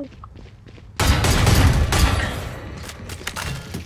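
A magical ability bursts to life with a loud whoosh.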